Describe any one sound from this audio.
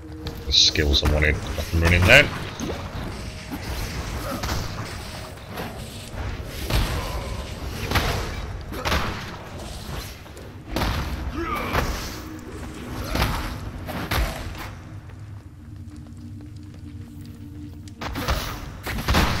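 Spells burst and crackle in quick blasts.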